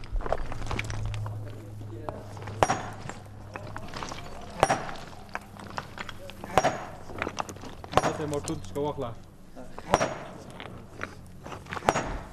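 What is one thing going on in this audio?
Loose stones clatter and knock underfoot.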